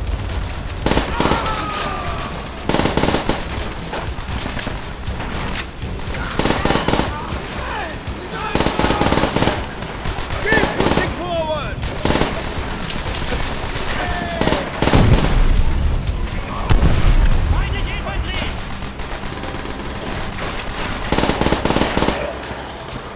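A submachine gun fires rapid bursts of shots that echo in a large room.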